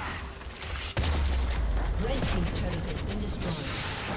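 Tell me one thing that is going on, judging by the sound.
A stone tower explodes and crumbles with a deep rumble.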